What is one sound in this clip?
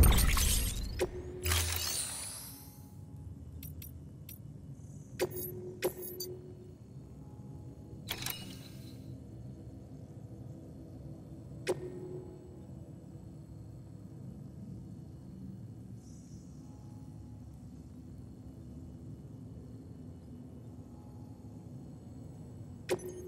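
Short electronic clicks and chimes sound as menu choices are made.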